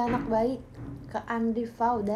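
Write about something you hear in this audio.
A young woman bites and chews crunchy pizza crust.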